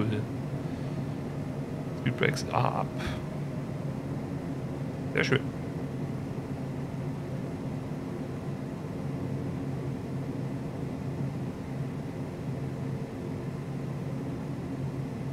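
Jet engines roar steadily as an aircraft rolls down a runway.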